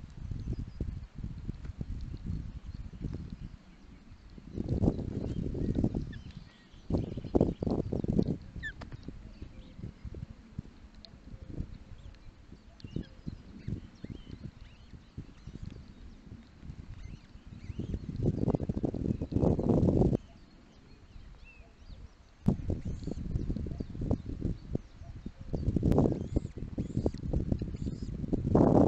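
Twigs rustle and crackle under large birds on a nest.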